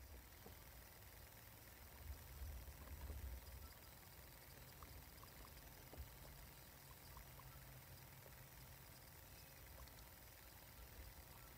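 A guinea pig rustles about in dry bedding close by.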